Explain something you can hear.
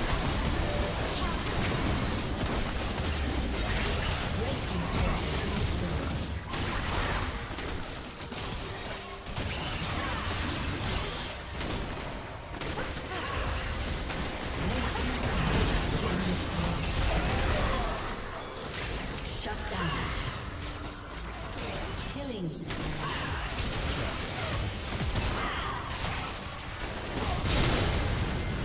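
Spell blasts and hits crash and whoosh in a fast video game battle.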